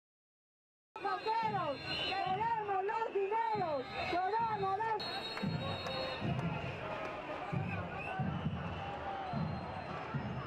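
A large crowd chants loudly outdoors.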